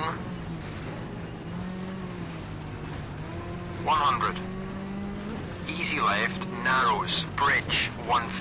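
A rally car engine drones steadily as the car drives on gravel.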